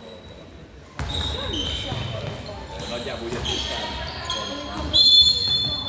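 Young women call out to each other across an echoing hall.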